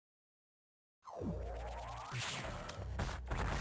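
Small explosions and blaster shots go off in a video game.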